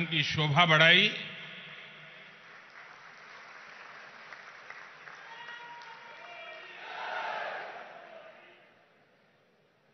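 A large crowd cheers and claps in an echoing hall.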